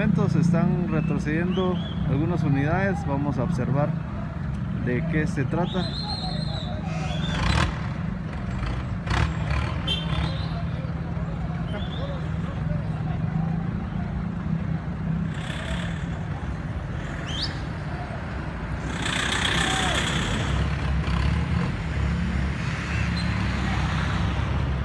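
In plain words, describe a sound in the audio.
Traffic engines rumble steadily in the distance.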